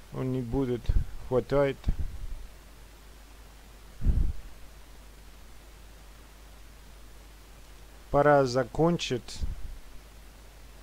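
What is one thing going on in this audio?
A middle-aged man speaks calmly and briefly, close to the microphone.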